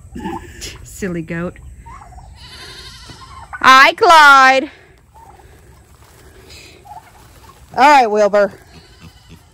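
Turkeys call out loudly close by, in short, wavering bursts.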